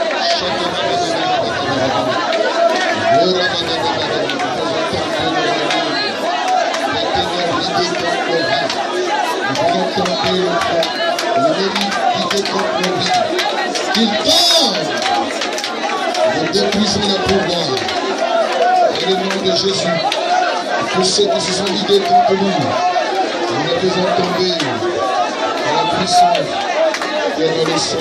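A crowd sings loudly together in a room.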